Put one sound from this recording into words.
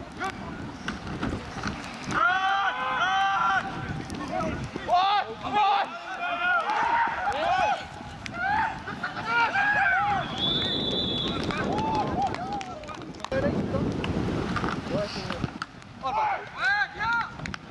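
Men shout and cheer loudly outdoors.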